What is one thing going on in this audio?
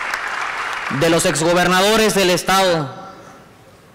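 A man speaks loudly through a loudspeaker in a large hall.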